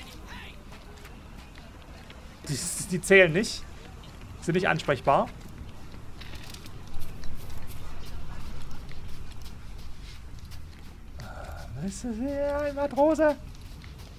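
Footsteps run on gravel.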